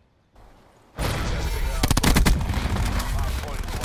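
A gun clicks and rattles as it is reloaded.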